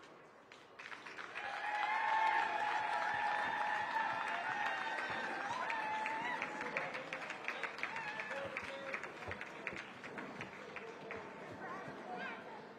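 A crowd applauds in a large arena.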